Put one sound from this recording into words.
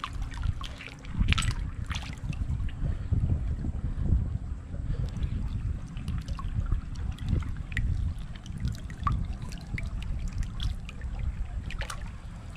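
A hand sloshes and splashes in the water.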